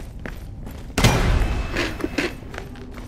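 A heavy door bangs open.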